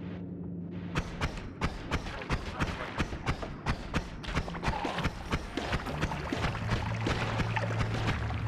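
Game digging sounds knock in a rapid, steady rhythm.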